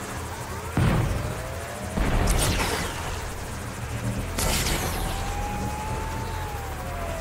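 Bursts of crackling energy blast and whoosh in a video game.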